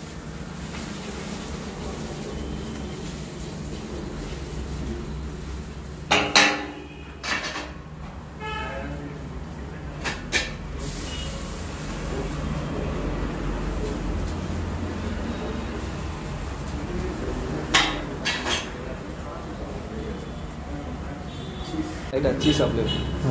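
A metal spatula scrapes and taps on a hot griddle.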